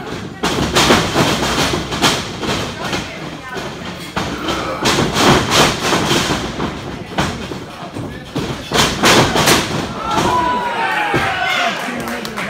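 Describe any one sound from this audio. Bodies slam onto a wrestling ring's mat with loud thuds.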